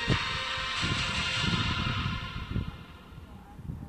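A short victory fanfare plays.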